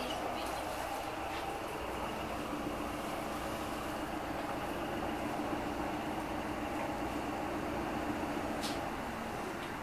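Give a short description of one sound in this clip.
An electric motor whines steadily, then drops away.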